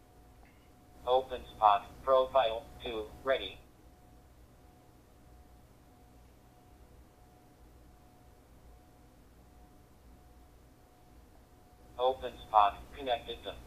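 A handheld radio plays a voice through its small, tinny speaker.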